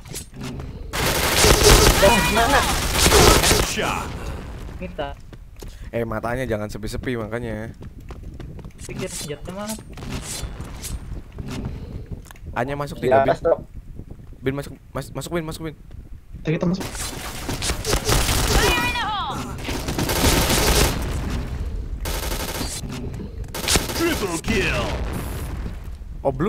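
Gunfire bursts in rapid volleys.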